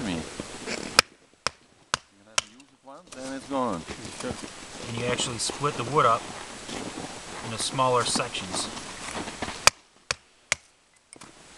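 A wooden mallet knocks sharply on wood.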